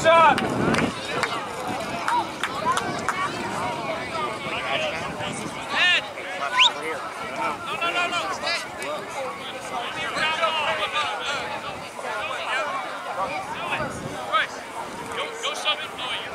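A crowd of children and adults shouts and cheers outdoors.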